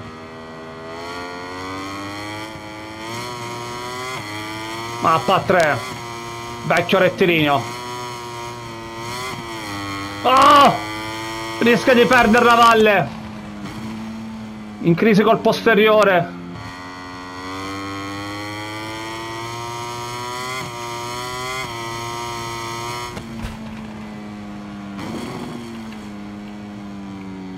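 A motorcycle engine drones and rises and falls in pitch as it speeds up and slows down.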